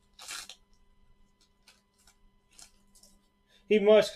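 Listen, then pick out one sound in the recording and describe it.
A plastic wrapper crinkles and rustles as it is torn open.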